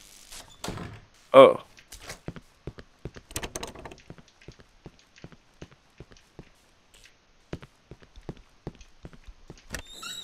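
Footsteps crunch on a gritty floor.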